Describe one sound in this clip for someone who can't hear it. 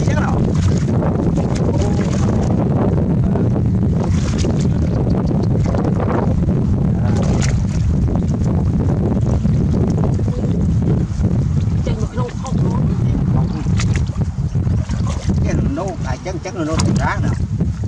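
Water splashes and sloshes as a net is dragged through a shallow muddy pool.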